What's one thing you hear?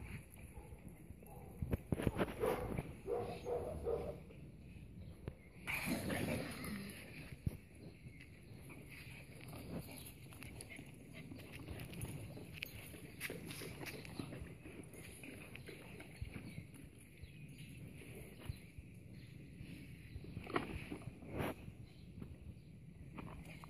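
Dogs' paws thud and rustle across grass.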